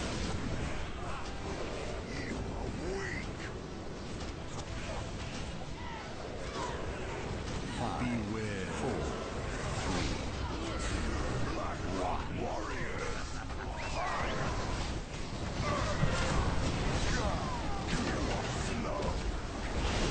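Magic spells crackle and burst amid a fierce battle.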